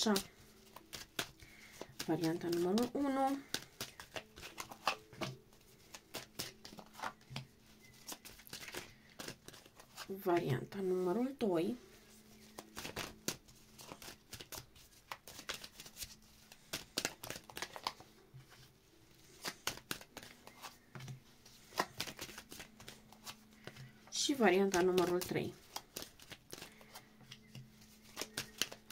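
Playing cards are dealt and slapped softly onto a cloth table, one after another.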